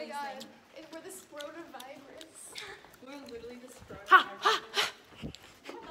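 A young woman shouts excitedly.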